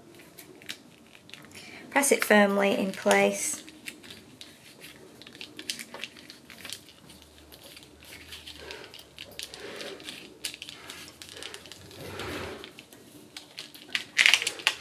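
Card stock rustles and taps as hands handle it close by.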